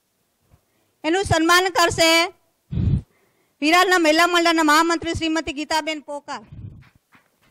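A middle-aged woman sings through a microphone.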